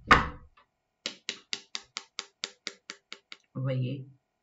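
Playing cards flick and riffle in quick, even clicks.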